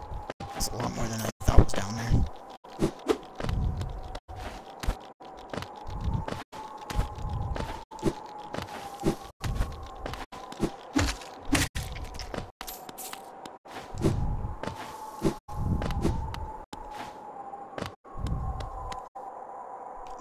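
A small game character jumps and lands with soft thumps.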